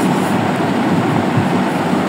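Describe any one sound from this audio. Paper rustles as hands slide a sheet across a table.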